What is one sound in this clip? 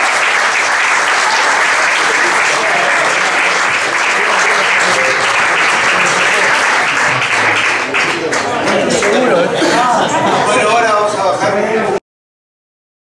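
A live band plays loudly in an echoing room.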